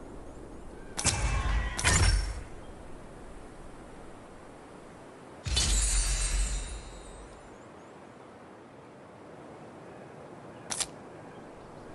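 Loud game sound effects whoosh and boom in short bursts.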